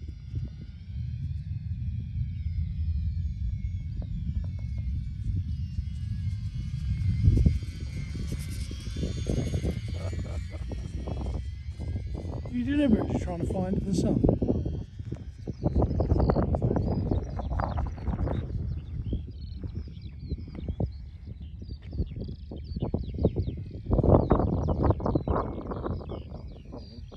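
A small model plane's engine buzzes overhead, its pitch rising and falling as it passes.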